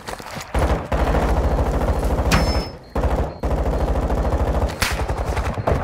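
Rapid automatic gunfire rattles in fast bursts.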